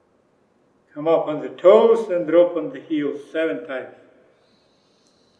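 A man gives instructions calmly through a microphone.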